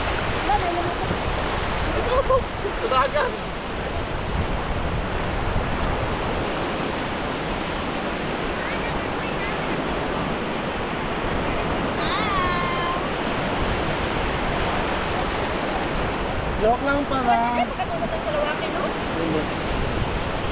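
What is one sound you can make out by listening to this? Young women talk and call out casually nearby.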